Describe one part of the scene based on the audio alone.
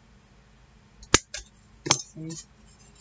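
Scissors snip through paper with sharp clicks.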